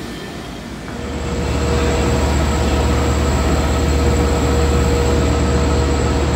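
A subway train rumbles loudly past.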